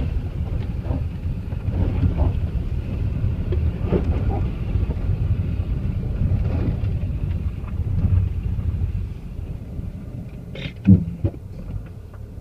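Tyres roll over a muddy, slushy track.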